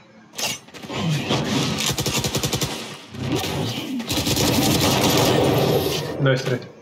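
A submachine gun fires rapid bursts close by.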